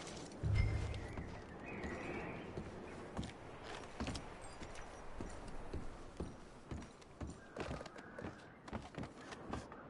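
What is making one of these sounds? Boots thud on creaky wooden floorboards.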